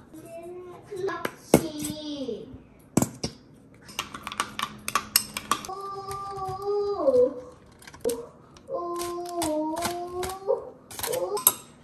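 A metal spoon clinks and scrapes against a ceramic bowl.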